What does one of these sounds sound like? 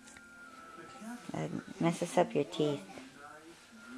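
A young child talks softly close by.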